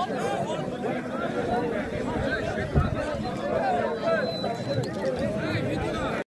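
A large outdoor crowd chatters and calls out loudly.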